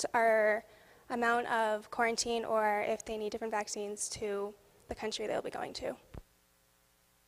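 A young woman speaks with animation through a microphone in a large echoing hall.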